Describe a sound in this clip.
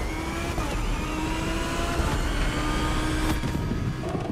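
A racing car engine roars at high revs, rising in pitch through quick gear shifts.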